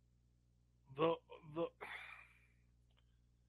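A young man laughs softly over an online call.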